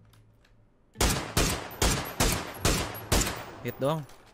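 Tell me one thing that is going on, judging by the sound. A rifle fires a rapid series of sharp shots.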